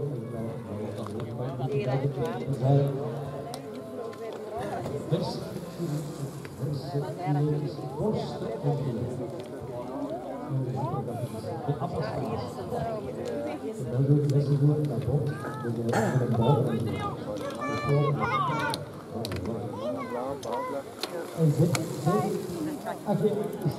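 A crowd of men and women chat and call out nearby, outdoors.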